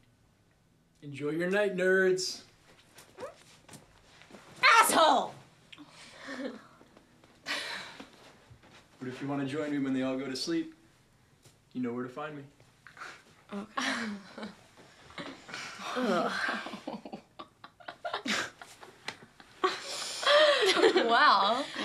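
Young women talk and laugh loudly close by.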